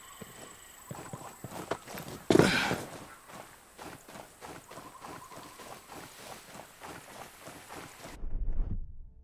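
Footsteps crunch quickly over ground.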